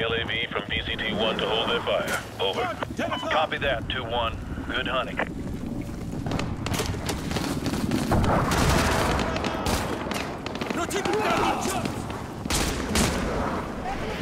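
Gunfire cracks in short bursts nearby.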